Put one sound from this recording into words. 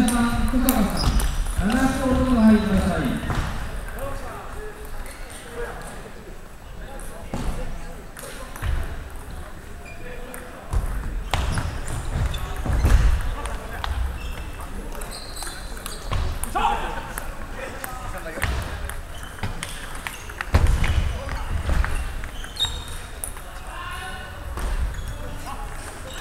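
Young men talk and call out in an echoing hall.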